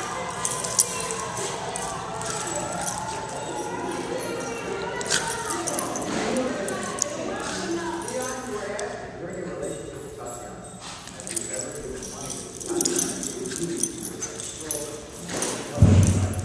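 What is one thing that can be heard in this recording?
Dog claws scrabble on a concrete floor.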